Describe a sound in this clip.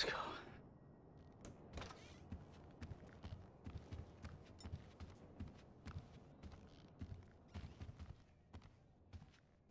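Footsteps walk steadily on a hard floor indoors.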